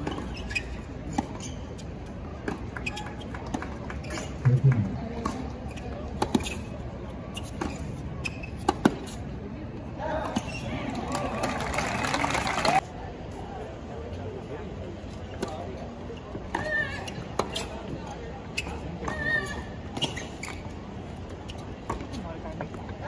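A tennis racquet strikes a ball outdoors.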